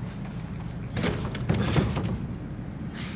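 A metal door handle rattles and clanks.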